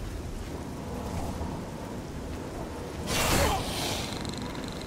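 A frost spell crackles and hisses as it is cast.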